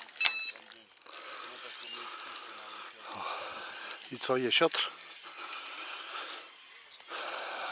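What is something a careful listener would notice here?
A fishing reel whirs as its handle is turned.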